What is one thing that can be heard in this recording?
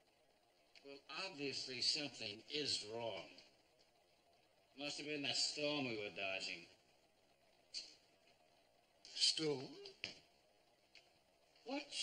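An elderly man speaks firmly and calmly.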